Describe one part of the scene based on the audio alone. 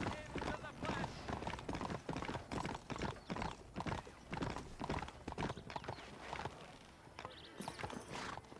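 Horse hooves clop quickly on a cobbled street.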